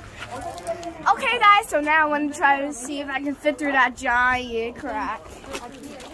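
A young girl sings loudly and excitedly close by.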